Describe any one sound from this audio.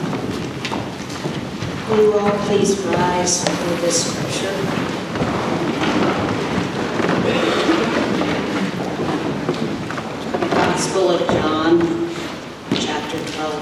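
People chatter and murmur in a large room.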